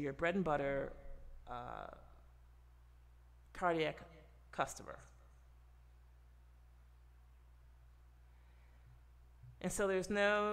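A woman speaks calmly into a close microphone, with pauses.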